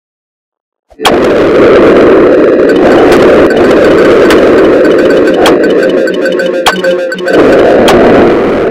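A loud, harsh rushing roar bursts in suddenly and keeps going.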